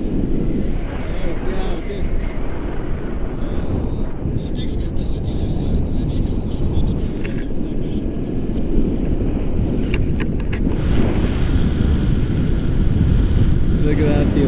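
Strong wind rushes and buffets against a microphone throughout.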